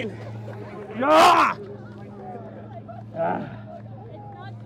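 A man shouts excitedly close by.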